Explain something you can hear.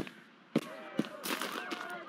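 Footsteps tread on a dirt path.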